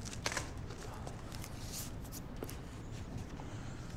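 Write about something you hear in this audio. Books shuffle and rustle in a cardboard box.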